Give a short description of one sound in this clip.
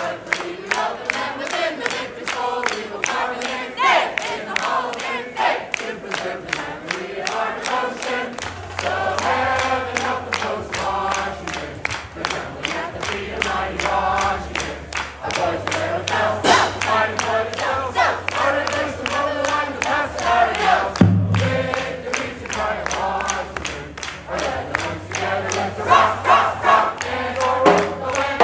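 A crowd of young people sings along.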